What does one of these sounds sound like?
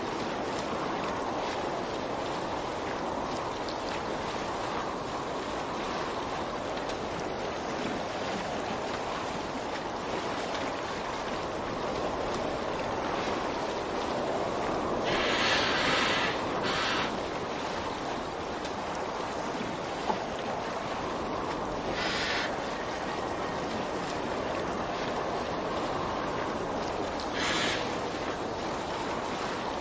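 Water splashes and laps steadily against a small rowing boat.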